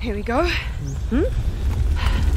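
A second young woman murmurs a short reply.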